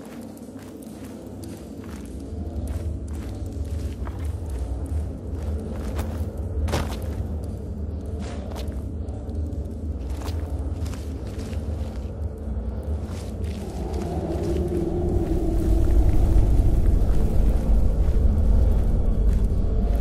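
Footsteps crunch softly on rough ground.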